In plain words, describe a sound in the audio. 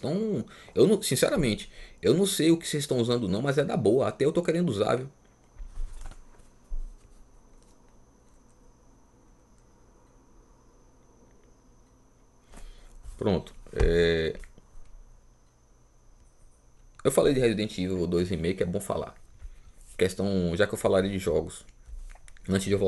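A man talks close to a microphone with animation, pausing now and then.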